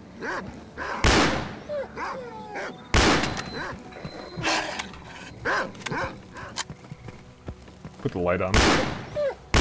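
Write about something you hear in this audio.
A shotgun fires with loud, booming blasts.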